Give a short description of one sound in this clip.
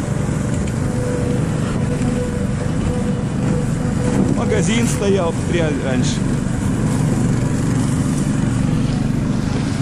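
A sled scrapes and hisses over snow.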